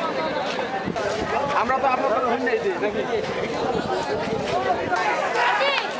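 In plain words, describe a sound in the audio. A crowd of men and women chatters close by.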